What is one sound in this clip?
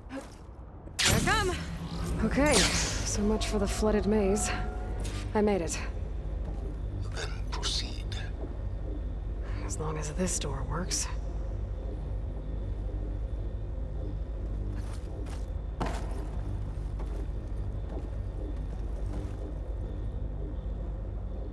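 Laser beams hum with a steady low drone.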